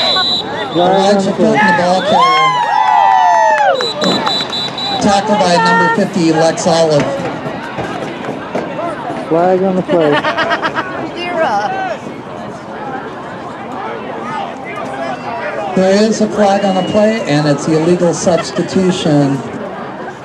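Men and women talk and call out loudly close by, outdoors.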